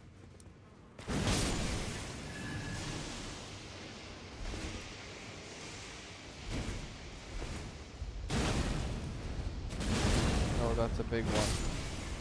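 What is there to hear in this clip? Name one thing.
Fire roars and crackles in bursts.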